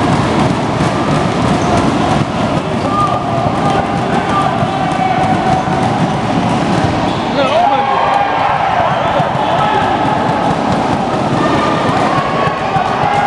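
Players' shoes squeak on the hard floor.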